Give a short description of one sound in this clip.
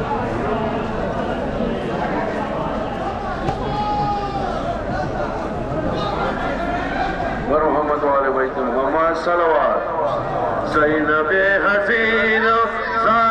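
A large crowd murmurs and chants outdoors.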